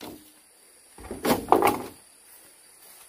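Bamboo poles knock and clatter together.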